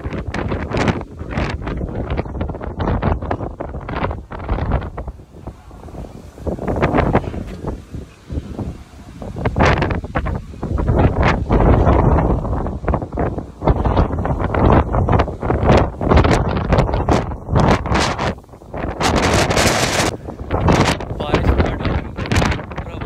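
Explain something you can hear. Strong wind roars and buffets the microphone outdoors.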